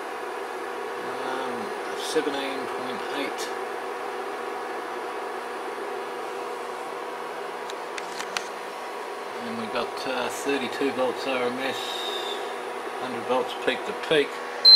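An electronic instrument hums steadily.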